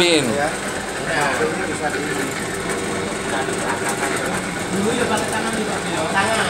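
An electric motor hums as it turns a belt-driven coffee roaster drum.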